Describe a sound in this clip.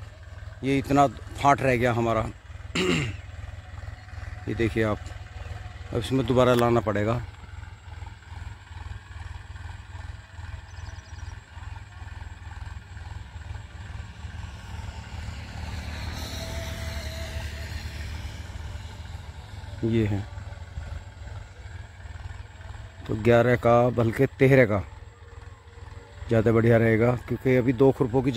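A tractor engine rumbles steadily in the distance.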